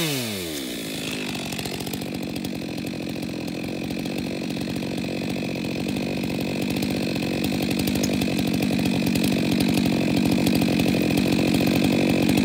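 A chainsaw idles steadily nearby.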